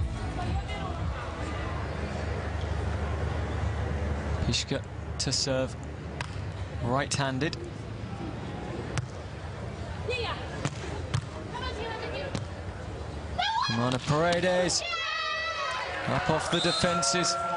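A large crowd murmurs in an open-air arena.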